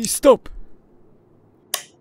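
A wall switch clicks.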